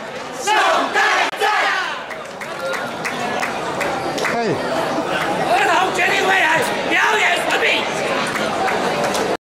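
A group of men and women chant and sing loudly together.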